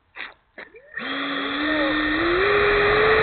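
A model jet turbine whines as it spools up, rising in pitch and growing louder.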